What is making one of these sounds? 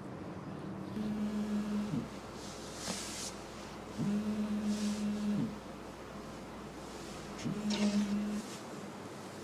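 A phone rings in short repeated bursts.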